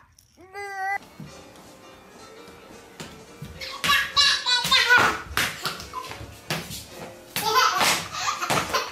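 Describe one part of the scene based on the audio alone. A baby babbles and shrieks in an echoing room.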